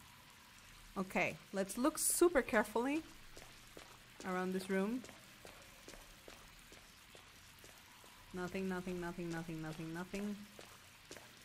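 A young woman speaks into a close microphone with animation.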